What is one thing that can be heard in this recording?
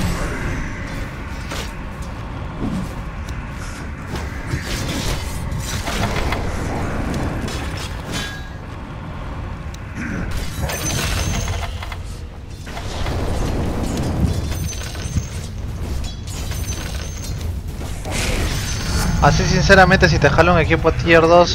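Spell impacts burst in quick bursts.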